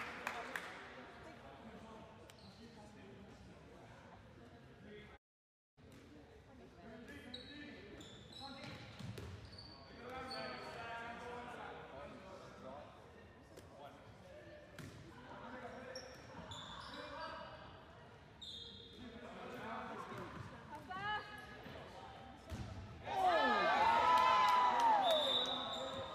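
A ball thuds as it bounces off the floor.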